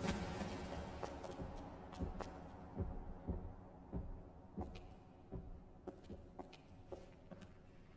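Footsteps thud slowly and evenly on stairs.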